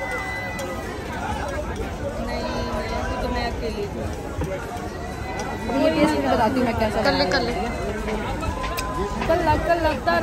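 A young woman talks on a phone.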